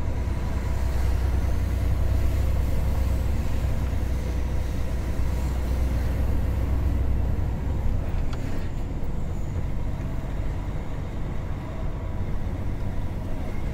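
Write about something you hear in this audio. Tyres roll on smooth asphalt.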